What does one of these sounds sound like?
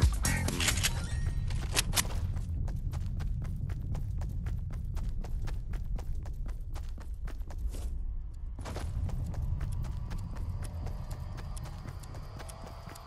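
Quick footsteps run over ground.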